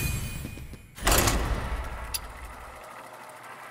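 A loud whoosh swells and fades as a game begins a search.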